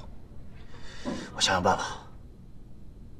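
A younger man answers calmly, close by.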